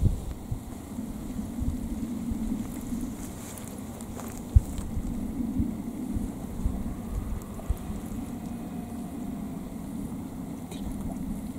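A young man talks with animation close by, outdoors.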